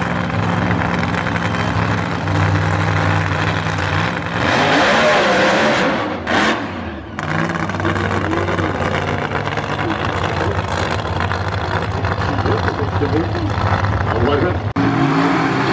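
A drag racing car's engine rumbles and roars loudly as it revs and speeds away.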